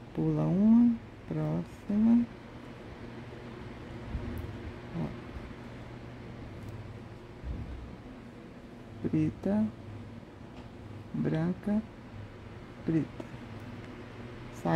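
Beads click softly as thread is pulled through them.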